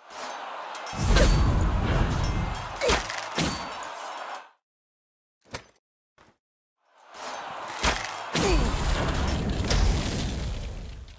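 A magic spell bursts with a deep, roaring whoosh.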